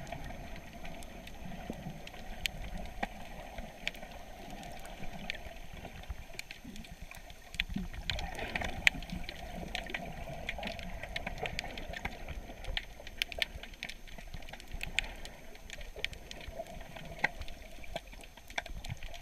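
Water churns and rumbles, heard muffled from underwater.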